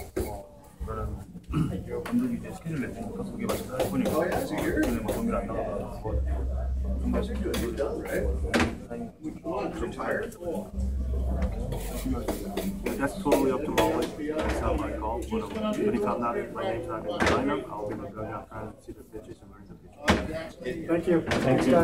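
A young man speaks calmly and softly up close.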